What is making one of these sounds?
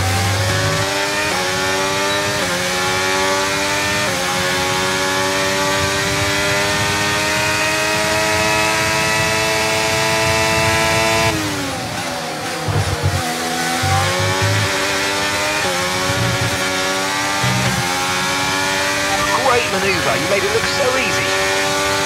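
A racing car engine screams at high revs, rising in pitch through each gear and dropping sharply on braking.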